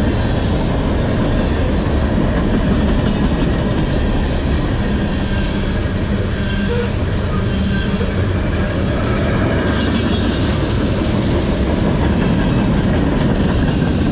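A freight train rumbles past close by, its wheels clattering and squealing on the rails.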